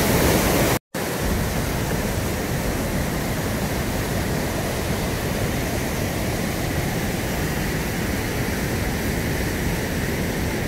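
Water cascades down beside a turning water wheel.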